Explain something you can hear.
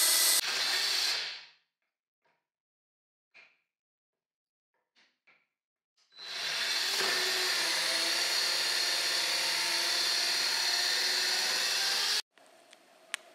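A power saw buzzes as it cuts through wood.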